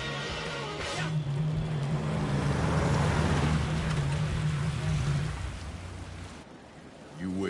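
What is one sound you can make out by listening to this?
A car engine idles with a low hum.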